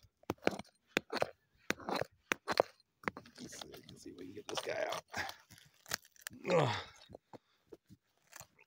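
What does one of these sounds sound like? A rock hammer strikes and scrapes at stony soil.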